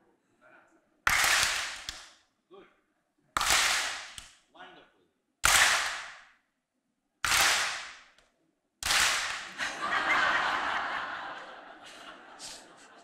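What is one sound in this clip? A crowd cheers loudly in short bursts in a large hall.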